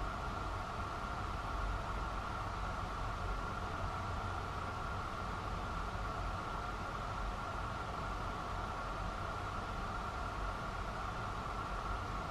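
The distant city hums steadily.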